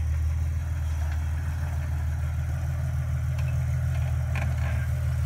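Tyres crunch over dirt and rocks.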